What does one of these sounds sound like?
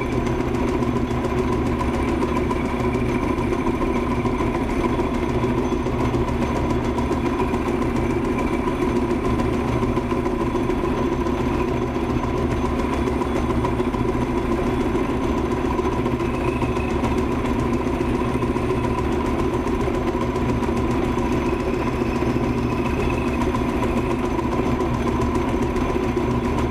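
A metal lathe hums steadily as its chuck spins.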